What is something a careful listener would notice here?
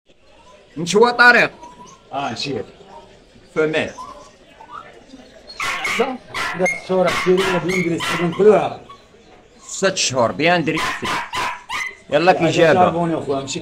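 A dog pants loudly.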